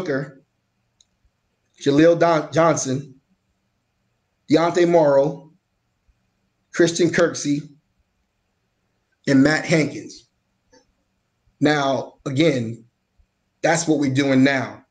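A man speaks calmly and closely into a microphone, in short phrases with pauses.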